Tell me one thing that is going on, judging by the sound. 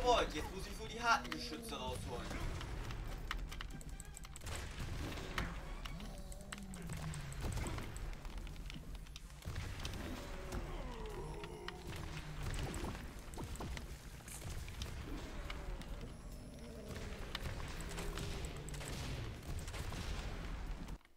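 Loud thuds and crashes of a game battle sound throughout.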